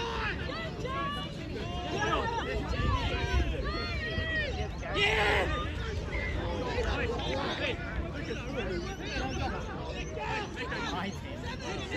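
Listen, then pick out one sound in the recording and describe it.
Many young men shout and call out to each other across an open field.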